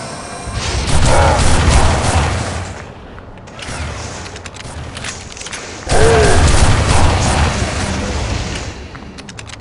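A heavy gun fires in loud booming blasts.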